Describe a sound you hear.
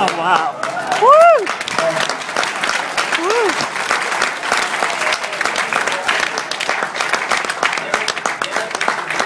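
A crowd applauds steadily through loudspeakers in a large room.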